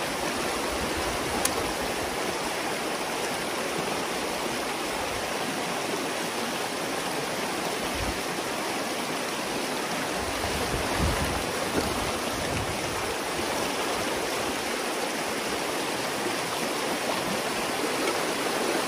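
Water rushes and gurgles steadily through a gap in a dam.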